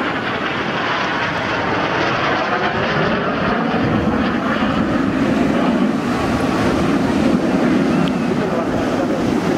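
A jet engine roars loudly overhead, its pitch shifting as the plane turns.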